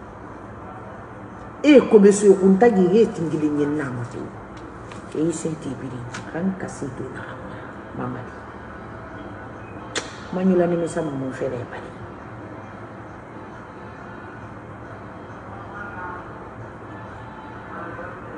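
A woman sobs and sniffles.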